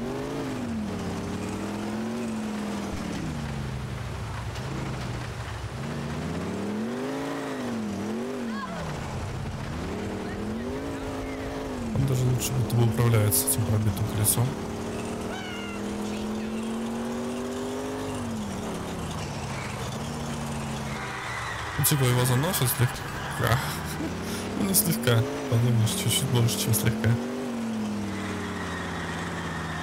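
A car engine revs up and down steadily.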